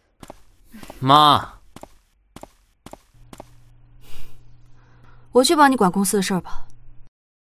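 A young woman speaks up close, with a rising, expressive tone.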